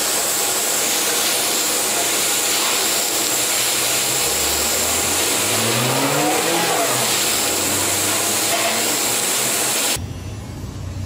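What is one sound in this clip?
A welding arc hisses and crackles steadily.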